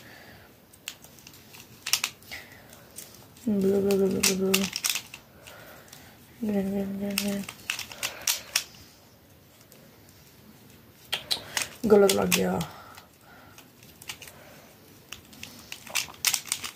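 Plastic puzzle pieces click and rattle as they are twisted by hand.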